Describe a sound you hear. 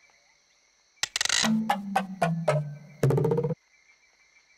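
Wooden pegs clatter and knock as they tumble down a wooden track.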